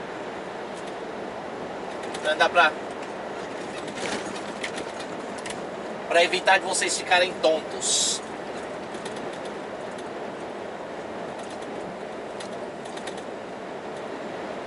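Tyres roll steadily on a motorway.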